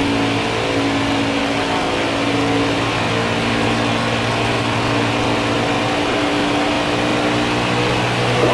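Tyres hum loudly on the track.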